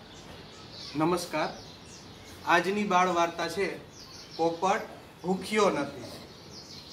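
A man speaks calmly, close by, in short phrases.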